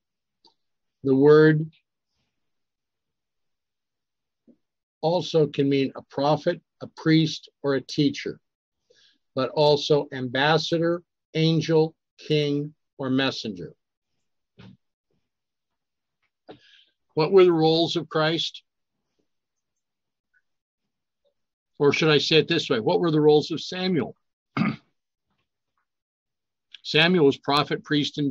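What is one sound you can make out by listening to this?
An older man speaks calmly over an online call, reading out and explaining.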